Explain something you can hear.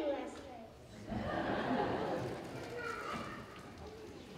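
An audience laughs and claps in a large hall.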